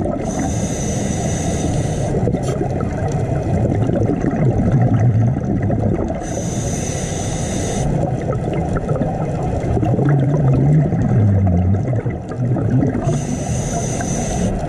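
Air bubbles from a diver's breathing gear rush and gurgle in bursts underwater.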